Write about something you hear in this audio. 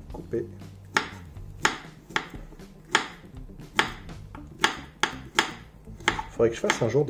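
A knife chops through a banana onto a wooden board with sharp, regular knocks.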